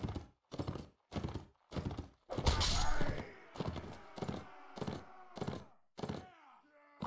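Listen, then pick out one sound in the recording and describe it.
A horse gallops with thudding hoofbeats.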